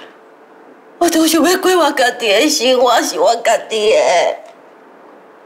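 A woman sobs and wails.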